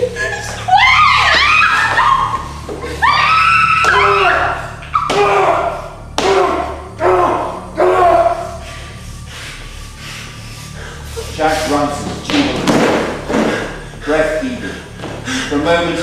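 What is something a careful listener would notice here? A man shouts and cries out with animation in an echoing hall.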